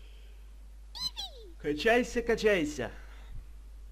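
A small creature lets out a series of high, chirping cries.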